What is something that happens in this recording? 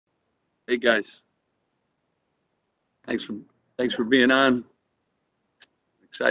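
A middle-aged man speaks calmly in short bursts over an online call.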